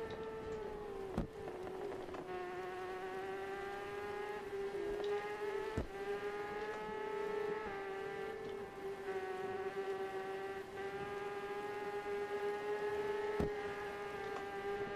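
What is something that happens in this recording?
A motorcycle engine drones steadily at high revs, shifting pitch as gears change.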